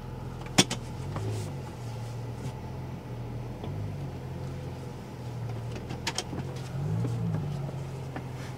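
A car engine revs briefly and settles back.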